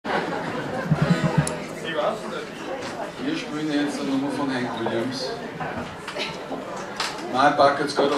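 A small acoustic band plays a lively tune.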